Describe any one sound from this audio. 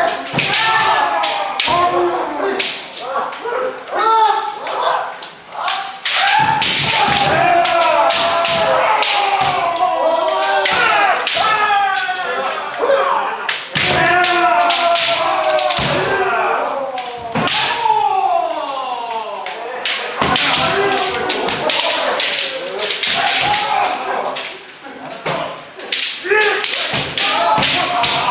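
Bamboo swords clack and strike against each other.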